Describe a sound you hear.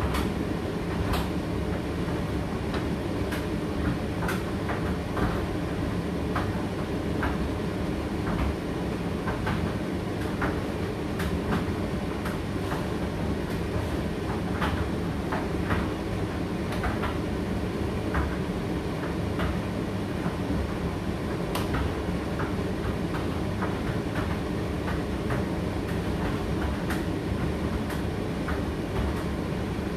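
Items tick and knock inside a turning tumble dryer drum.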